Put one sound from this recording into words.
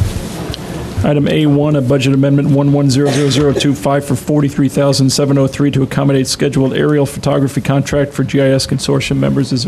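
A middle-aged man speaks calmly through a microphone in an echoing room.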